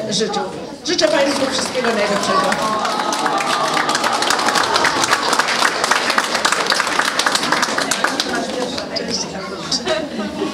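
A crowd applauds loudly in a hall.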